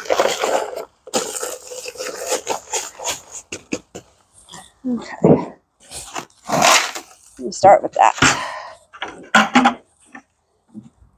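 Plastic buckets knock and thud as they are set down.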